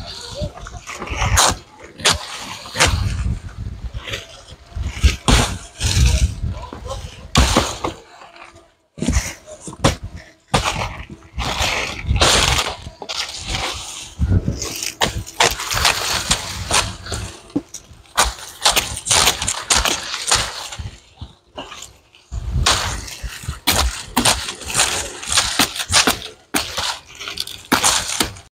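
Dry palm fronds rustle and crackle as they are dragged over the ground.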